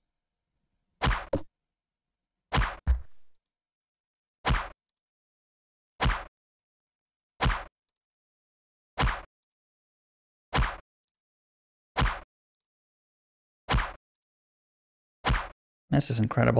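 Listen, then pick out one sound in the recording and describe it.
Bows twang as arrows are shot in a steady rhythm.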